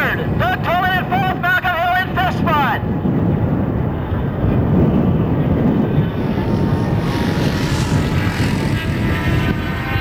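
Racing motorcycle engines whine and rev up and down as they shift gears at a distance.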